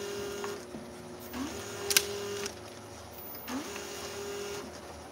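A labelling machine hums steadily, its motor rising and falling in pitch in cycles.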